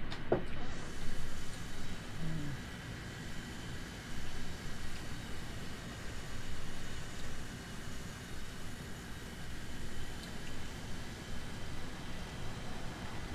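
A jet engine roars steadily with a low rumble.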